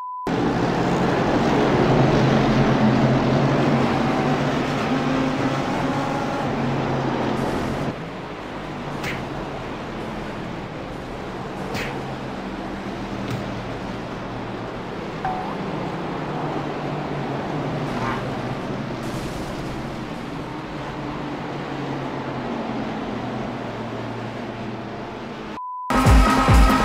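Racing car engines roar loudly as a pack of cars speeds past.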